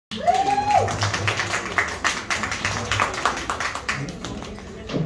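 An audience claps and cheers in a room.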